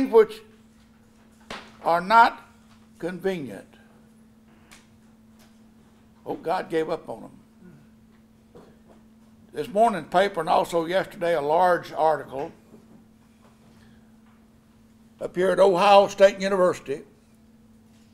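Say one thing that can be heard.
An elderly man speaks slowly and emphatically into a microphone, with long pauses.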